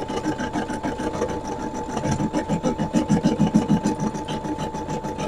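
An embroidery machine stitches with a fast, steady rattling hum.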